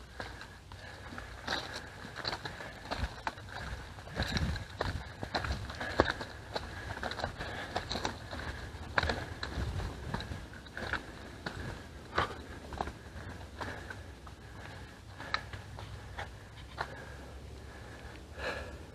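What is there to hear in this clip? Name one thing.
Bicycle tyres roll and crunch over a rocky dirt trail.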